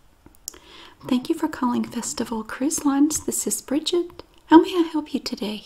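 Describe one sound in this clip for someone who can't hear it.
A middle-aged woman speaks calmly into a headset microphone.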